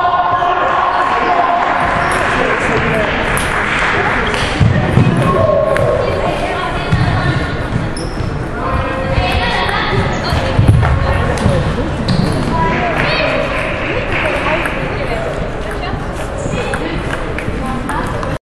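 A crowd murmurs throughout a large echoing hall.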